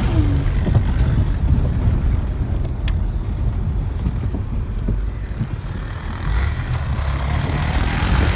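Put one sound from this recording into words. A car engine rumbles steadily while driving over snow.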